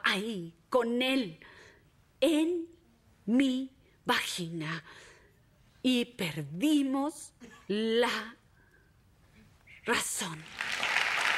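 A woman speaks intensely and emphatically into a microphone, in short bursts.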